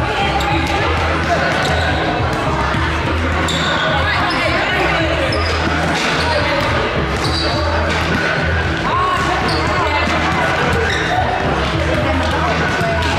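A crowd chatters in a large echoing gym.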